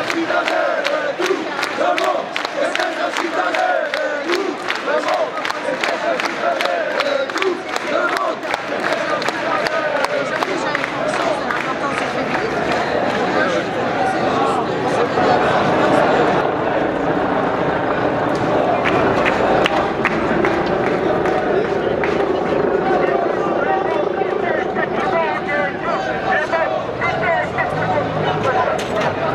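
A large crowd of protesters chants loudly outdoors.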